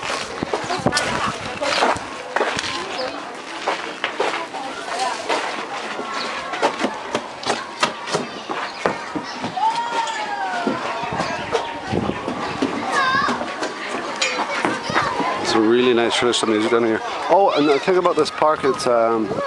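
A crowd of adults and children chatter and call out nearby, outdoors.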